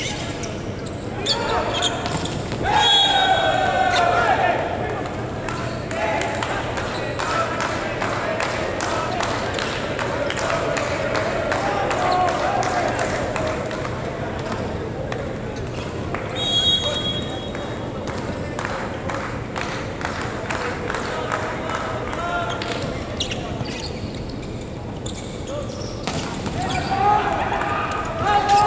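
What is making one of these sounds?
Players shout to each other across a large echoing hall.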